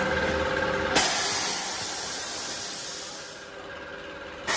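Air hisses loudly from a pressing machine, then fades.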